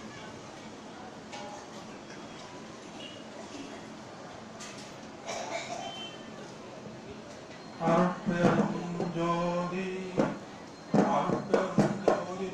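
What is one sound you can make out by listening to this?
An elderly man speaks into a microphone through a loudspeaker.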